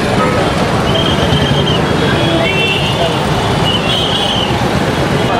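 Car horns honk in busy traffic.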